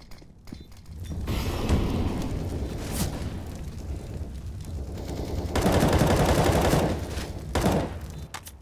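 Fire roars and crackles nearby.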